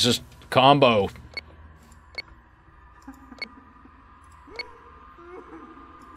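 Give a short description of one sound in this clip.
Keypad buttons beep as numbers are entered.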